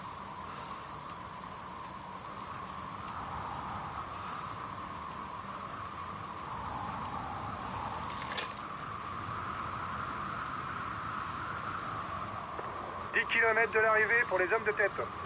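Wind rushes steadily past a moving cyclist.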